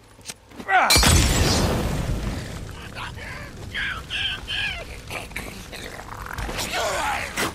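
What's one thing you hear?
A fire bursts into flames with a loud whoosh and crackles.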